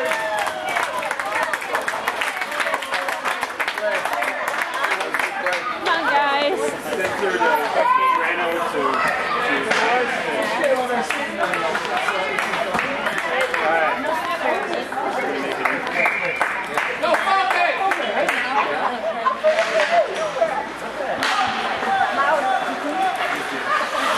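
Young players and spectators shout and chatter across a large echoing rink.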